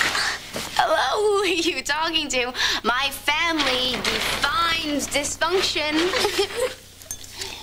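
A young woman talks with animation.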